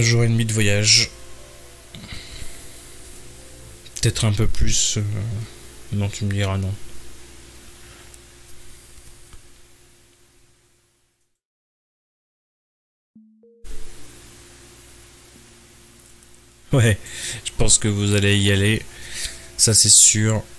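A man talks with animation into a close microphone, pausing often.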